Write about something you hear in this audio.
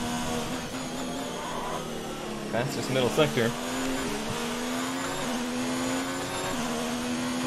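A racing car engine whines at high revs, shifting gears as it speeds along.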